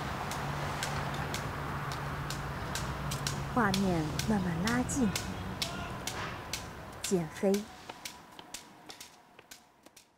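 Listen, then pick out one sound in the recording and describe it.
A white cane taps lightly and steadily on the pavement.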